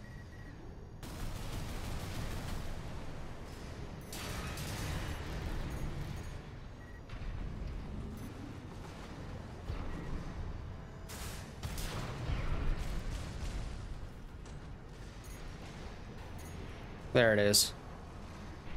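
Game gunfire and explosions boom and crackle.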